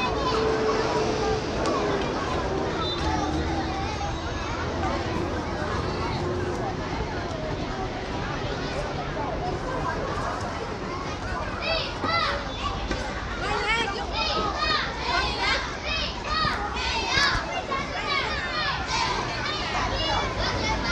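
Many young children chatter and call out nearby outdoors.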